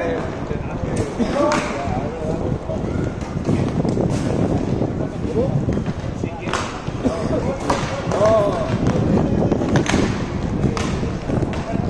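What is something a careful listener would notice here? Hockey sticks clack sharply against a ball and the rink floor.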